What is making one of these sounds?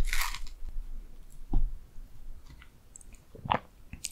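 A spoon scrapes into soft cake.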